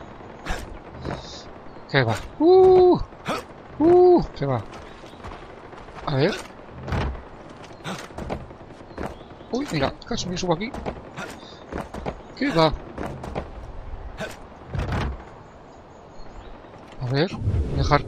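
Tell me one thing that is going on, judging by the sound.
Footsteps thud on wooden boards and the ground.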